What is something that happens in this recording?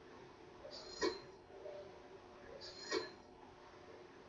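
A bright metallic chime rings out twice.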